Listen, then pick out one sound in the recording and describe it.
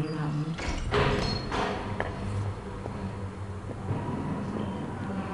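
A young man talks casually through a microphone.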